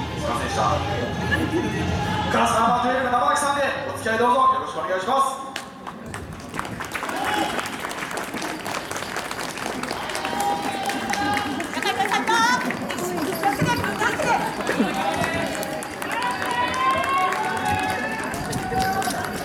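Several women and men chatter and call out close by, outdoors.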